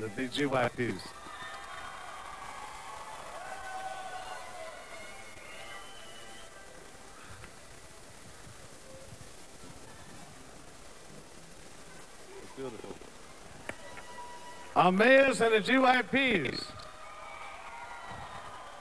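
A large crowd cheers in a big arena.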